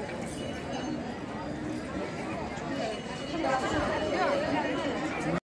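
Many women's voices chatter and call out nearby.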